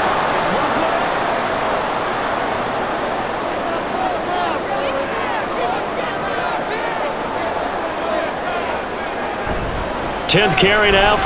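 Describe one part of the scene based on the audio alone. A large crowd cheers and roars steadily in a stadium.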